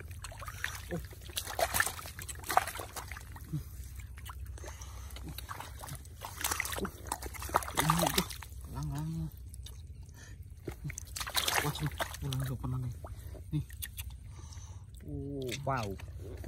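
Hands splash and slosh in shallow muddy water.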